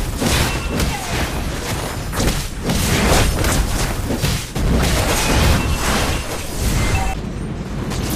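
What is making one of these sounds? Game spell effects crash and whoosh in quick bursts during a fight.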